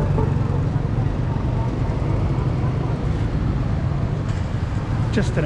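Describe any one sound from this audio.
Motorbikes and cars hum in steady street traffic.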